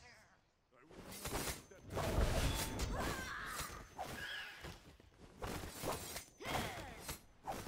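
Fighting sounds from a video game clash and crackle.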